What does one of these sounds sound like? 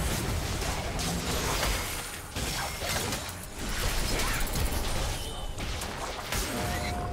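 Game spell effects whoosh, clash and burst in rapid succession.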